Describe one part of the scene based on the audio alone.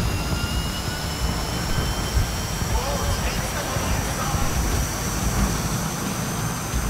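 A racing car engine roars at high speed and climbs in pitch.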